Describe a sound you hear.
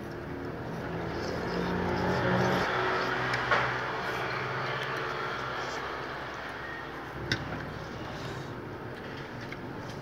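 A young woman slurps noodles.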